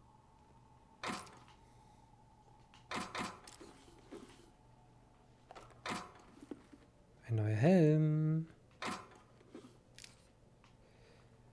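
Metal locker doors clank open and shut.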